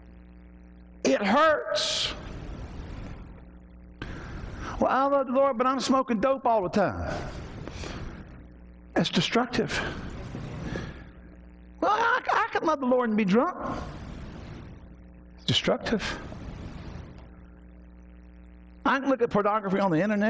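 A middle-aged man preaches forcefully through a microphone in an echoing hall, in loud bursts with pauses.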